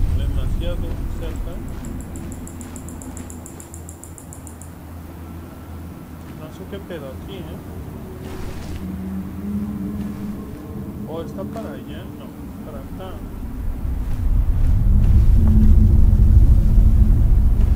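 Footsteps crunch on snow and gravel.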